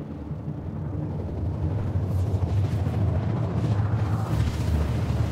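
A spacecraft engine rumbles low and steadily, growing slightly louder.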